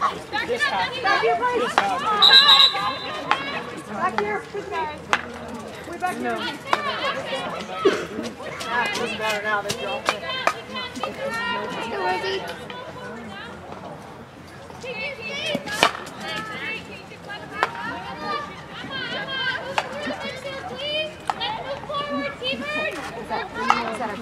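Hockey sticks click sharply against a ball.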